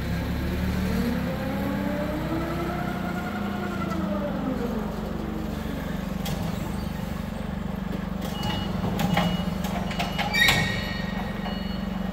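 A forklift engine hums steadily in a large echoing hall.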